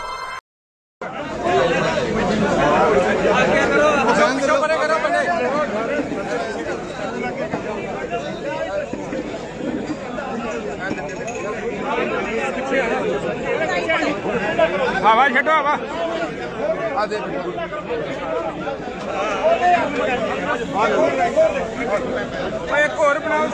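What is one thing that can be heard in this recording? A crowd of men and women talk over one another loudly outdoors.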